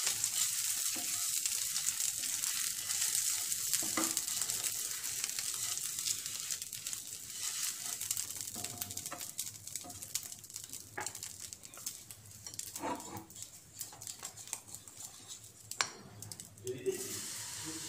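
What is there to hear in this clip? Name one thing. Butter sizzles in a hot pan.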